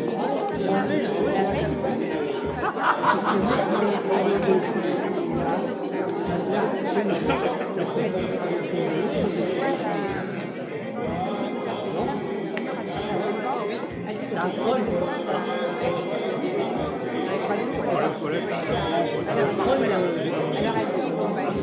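A crowd of men and women chatter all around in a large echoing hall.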